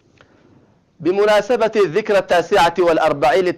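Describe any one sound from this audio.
A man speaks calmly and clearly into a microphone, like a news reader.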